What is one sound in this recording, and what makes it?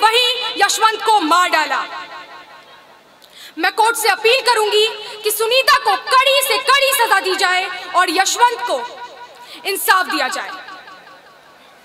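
A young woman speaks with emotion into a microphone over loudspeakers.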